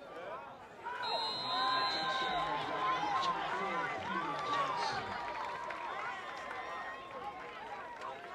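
Young male players shout and cheer outdoors.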